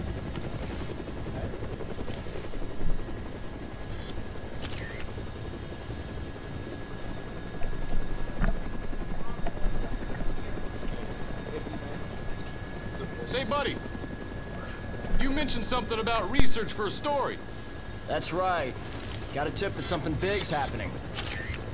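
A helicopter's engine and rotor rumble steadily throughout.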